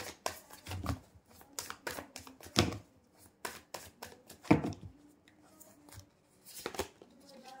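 Playing cards riffle and slap together as they are shuffled by hand.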